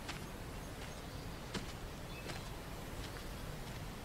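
Bare feet step softly on grass.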